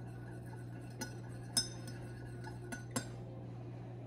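A spoon clinks against a mug while stirring.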